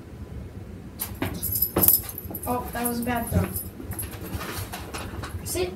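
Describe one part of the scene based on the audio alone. A dog's paws patter on the floor.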